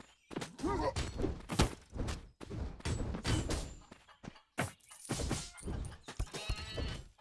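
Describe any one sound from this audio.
Magic blasts whoosh in quick bursts.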